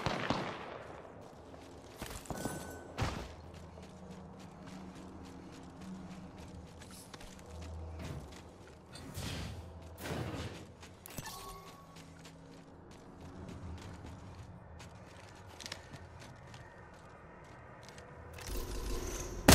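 Footsteps run quickly over ground and metal stairs.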